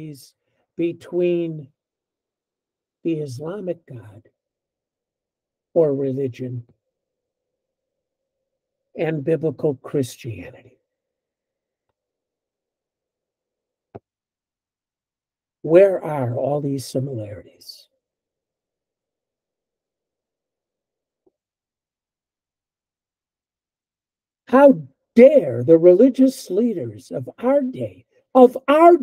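An elderly man speaks calmly in short bursts over an online call.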